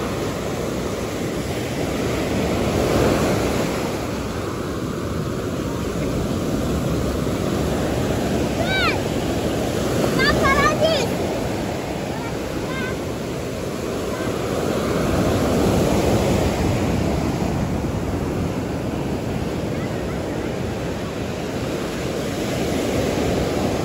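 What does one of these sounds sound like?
Waves crash and wash steadily onto the shore outdoors.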